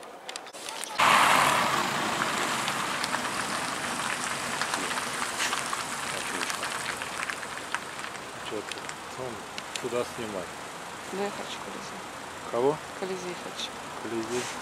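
Road traffic rushes past steadily nearby.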